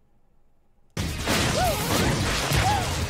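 Loud video game music and effects play.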